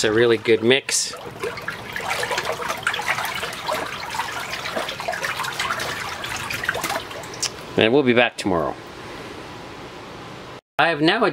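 A hand swishes and splashes through water.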